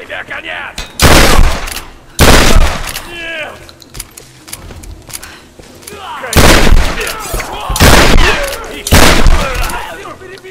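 Shotgun blasts boom loudly, one after another.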